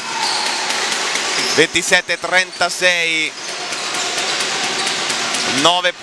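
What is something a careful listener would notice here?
A basketball bounces on a wooden floor as a player dribbles.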